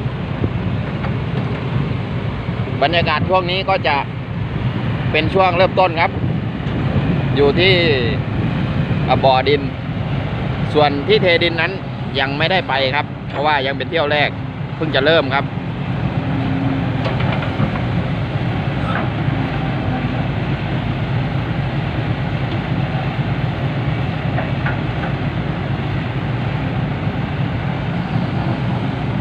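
A heavy diesel engine rumbles steadily nearby.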